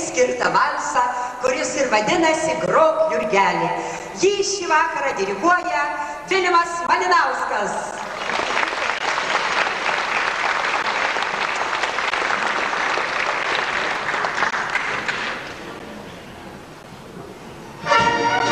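An accordion and fiddles play a lively folk tune.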